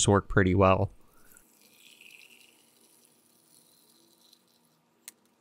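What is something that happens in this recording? Liquid pours and splashes softly into a glass beaker.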